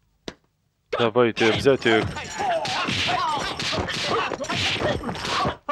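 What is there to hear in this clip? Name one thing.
Men shout and yell as a fight breaks out.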